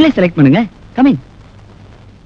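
A man speaks briefly and sharply.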